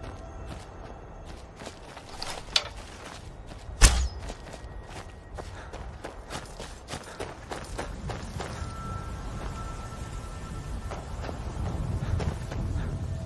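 Footsteps crunch through dry grass and rocks.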